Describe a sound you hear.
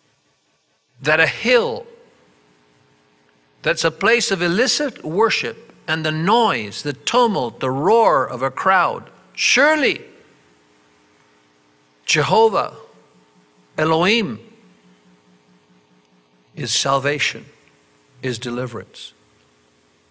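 An elderly man speaks calmly into a microphone, with pauses, his voice carried by a loudspeaker.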